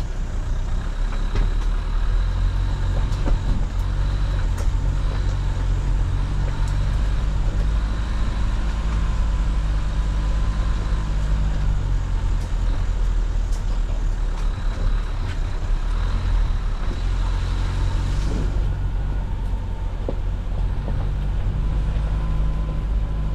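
A vehicle engine rumbles low and steady while driving slowly.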